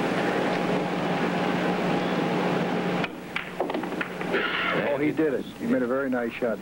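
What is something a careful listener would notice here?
Pool balls click together as a cue strikes them.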